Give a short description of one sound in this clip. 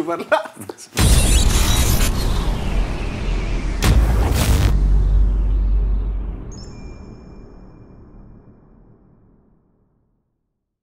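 A loud whooshing music sting plays and slowly fades out.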